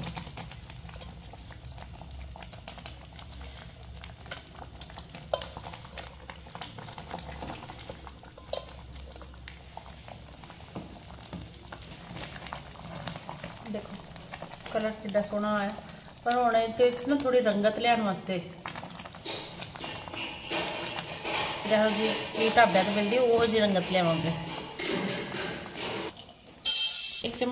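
Liquid bubbles and simmers in a pan.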